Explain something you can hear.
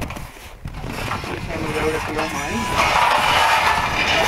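A metal frame clatters as a man lifts it.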